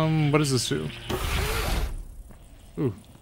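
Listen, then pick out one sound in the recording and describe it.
Electric sparks crackle and fizz loudly.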